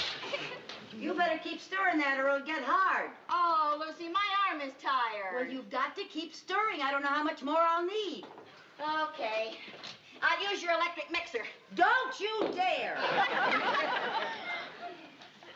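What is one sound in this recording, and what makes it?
A second middle-aged woman talks back excitedly.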